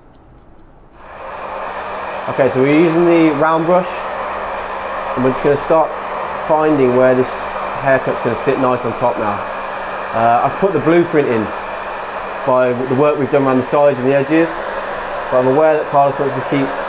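A hair dryer blows with a steady whoosh.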